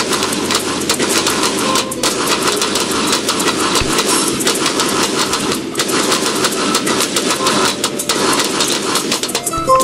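Cartoon explosions pop and crackle rapidly, one after another.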